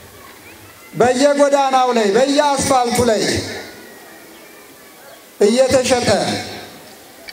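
A crowd sings a slow chant in loud bursts.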